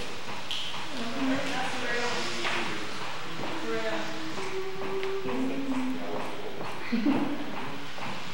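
A boy sings into a microphone.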